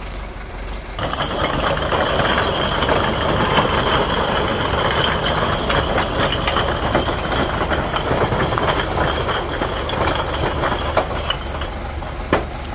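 Bricks clatter and tumble out of a tipping truck bed onto a pile.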